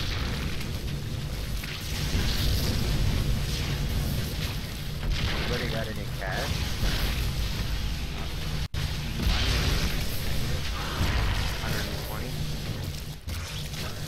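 Laser beams zap and crackle in a fierce battle.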